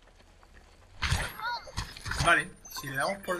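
A cartoonish crunch sounds as an object breaks apart.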